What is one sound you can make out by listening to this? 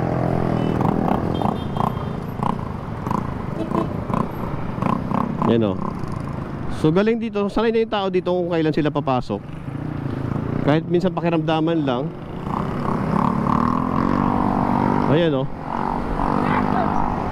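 Motorcycle engines idle close by.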